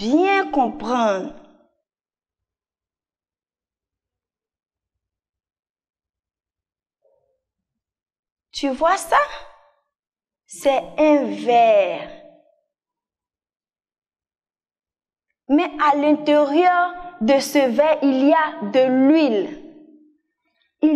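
A young woman speaks with animation, close to a microphone, in bursts with pauses.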